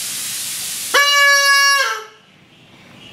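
A young child blows a toy whistle with a loud, shrill tone.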